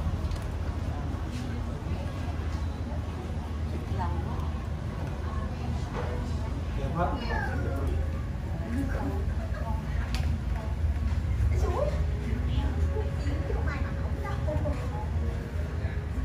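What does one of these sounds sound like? Several adults talk quietly nearby.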